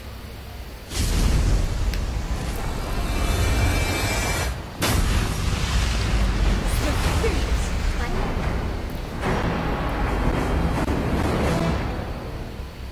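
Loud video game battle effects and music play, then fade.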